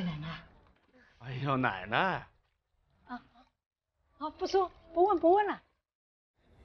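An elderly woman speaks close by.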